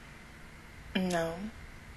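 A woman makes a short vocal sound close to a microphone.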